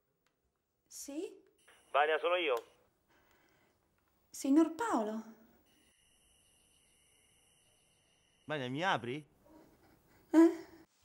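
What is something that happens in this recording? A young woman speaks urgently into a phone, close by.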